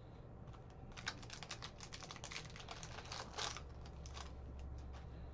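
Plastic wrapping crinkles and tears as a pack is opened.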